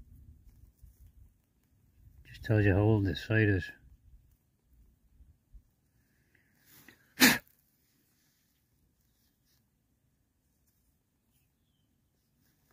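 Dry soil crumbles and rustles between fingers.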